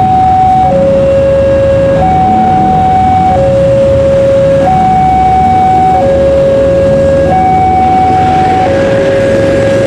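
A train rumbles as it approaches from a distance.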